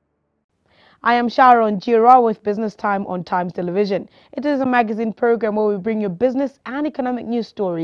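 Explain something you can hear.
A young woman speaks clearly and calmly into a microphone.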